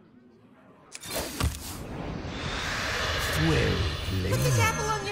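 A magical whoosh swells as a card is played in a game.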